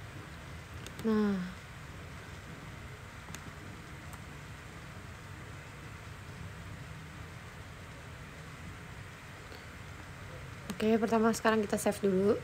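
A young woman hums and murmurs briefly close by.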